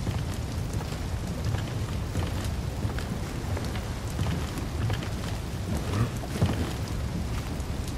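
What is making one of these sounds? Fire roars and crackles all around.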